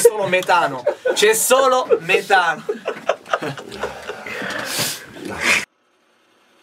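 A young man talks and laughs with animation close by.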